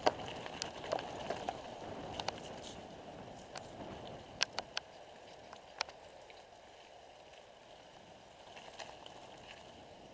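Bicycle tyres roll over a gravel trail.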